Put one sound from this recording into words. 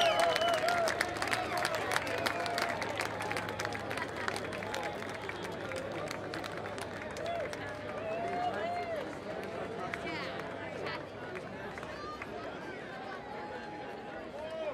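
A large crowd cheers and whistles outdoors.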